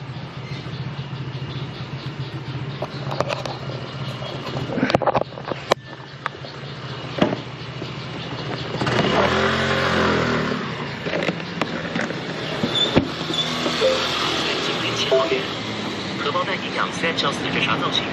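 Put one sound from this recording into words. A scooter engine idles with a low, steady hum.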